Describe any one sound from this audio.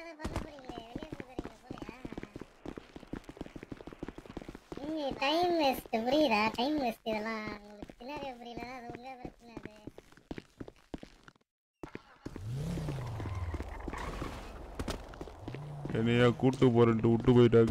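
Quick footsteps patter on a hard concrete floor.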